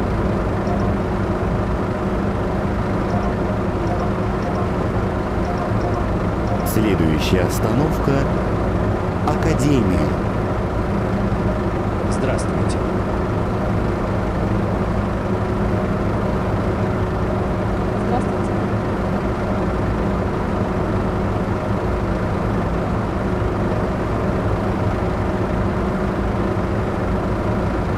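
A diesel city bus engine idles with a steady low rumble.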